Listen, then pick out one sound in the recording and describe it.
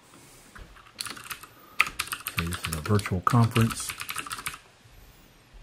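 Keyboard keys click rapidly.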